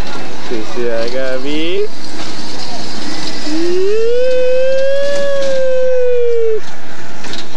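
A small ride car rumbles along a track.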